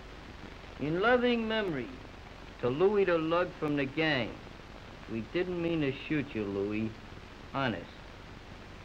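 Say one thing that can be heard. A man reads out slowly and calmly nearby.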